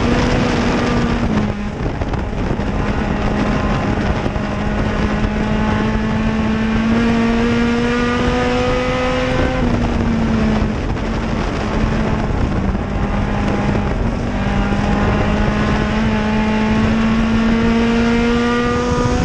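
A race car engine roars loudly from close by, its pitch rising and falling as the driver speeds up and backs off.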